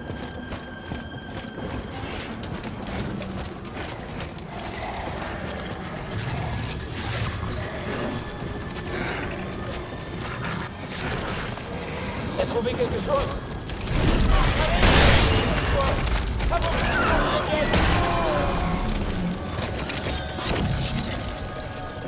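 Heavy boots crunch through snow.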